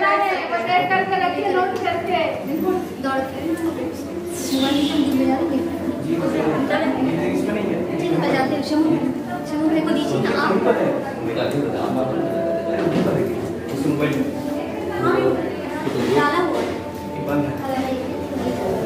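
A crowd of women chatter and talk over one another nearby.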